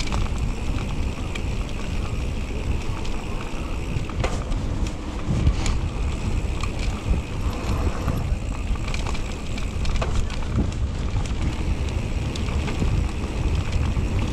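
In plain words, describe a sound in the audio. Wind rumbles loudly past a moving bicycle.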